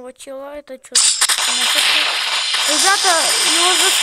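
Game gunfire and explosions roar loudly.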